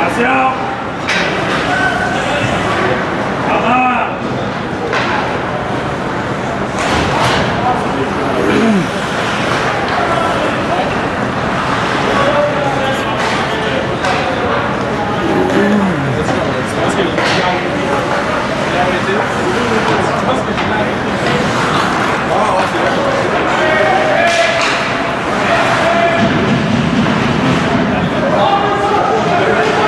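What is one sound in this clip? A crowd of spectators chatters and calls out in an echoing arena.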